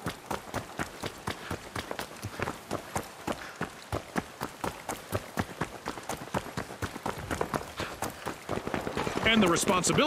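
Footsteps run quickly on a hard wet street.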